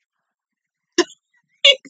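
A young woman laughs briefly close by.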